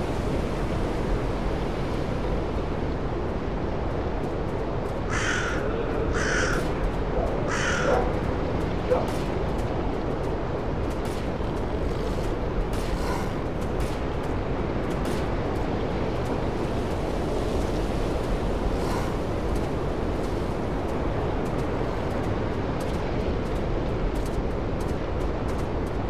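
Wind rustles steadily through trees and grass outdoors.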